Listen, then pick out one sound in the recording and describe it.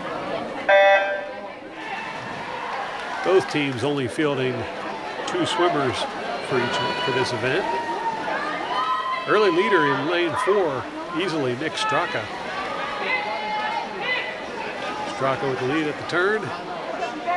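Swimmers splash loudly in an echoing pool.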